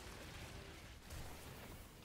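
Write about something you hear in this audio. An energy weapon fires crackling electric bursts.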